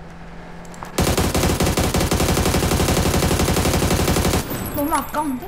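An automatic gun fires a rapid burst.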